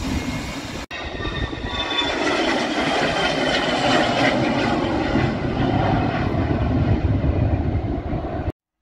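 A jet plane roars loudly as it takes off and climbs away.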